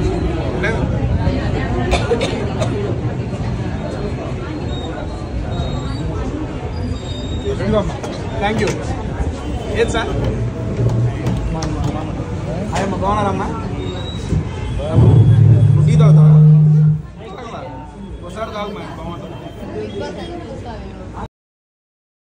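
A crowd of men chatters and cheers close by.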